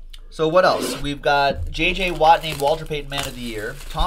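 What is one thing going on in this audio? Plastic packaging crinkles as it is torn open.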